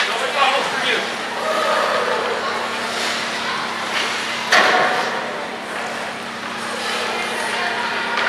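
Young hockey players cheer and shout in an echoing ice rink.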